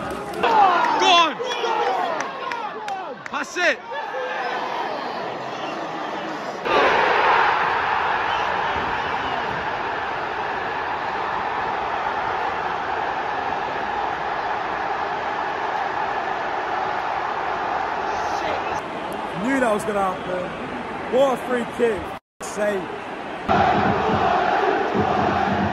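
A large crowd roars and chants in a big open stadium.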